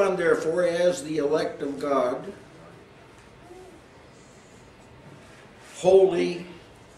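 An elderly man speaks emphatically, close by, with pauses.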